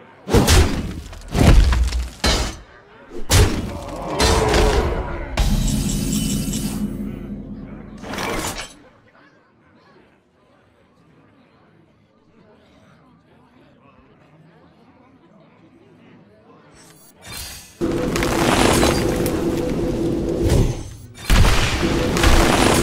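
Magical card game sound effects whoosh, clash and chime.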